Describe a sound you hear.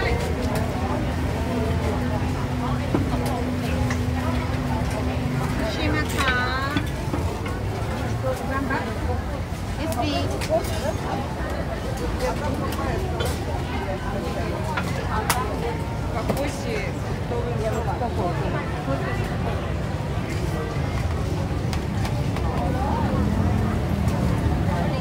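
A busy crowd murmurs and chatters all around outdoors.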